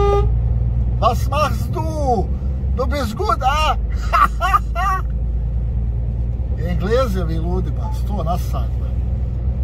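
A young man sings loudly nearby.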